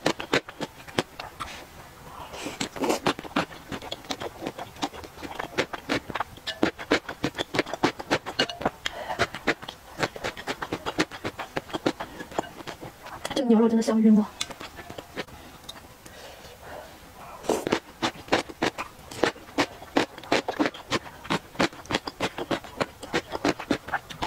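A young woman chews and slurps noodles close to a microphone.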